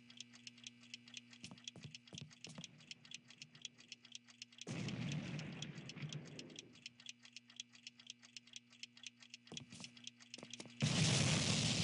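Footsteps tread quickly and steadily across a hard floor.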